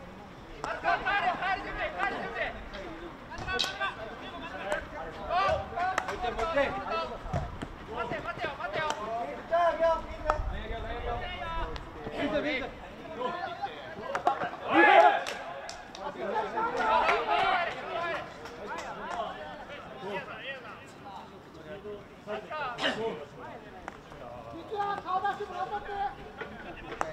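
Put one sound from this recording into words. Hockey sticks knock a ball on a hard pitch outdoors.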